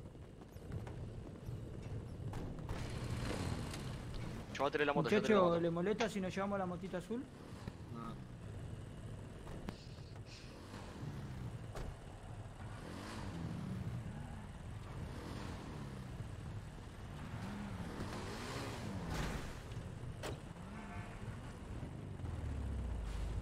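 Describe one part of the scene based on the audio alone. A motorcycle engine idles and rumbles low.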